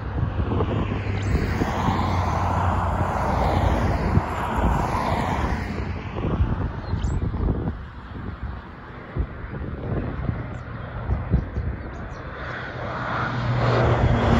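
A small propeller plane drones overhead, growing louder as it comes closer.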